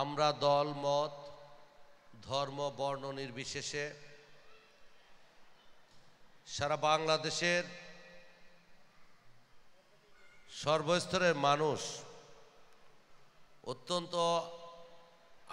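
A man speaks loudly and with emphasis in short bursts through a microphone and loudspeakers, with a slight echo.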